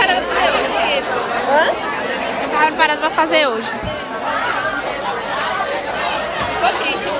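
Several young people chatter in the background.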